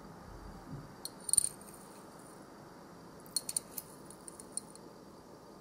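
A metal spoon clinks and scrapes against a small ceramic bowl.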